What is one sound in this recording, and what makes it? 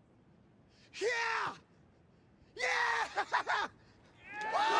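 A man shouts loudly and angrily.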